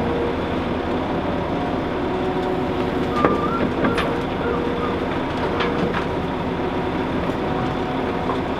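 A diesel excavator engine rumbles steadily.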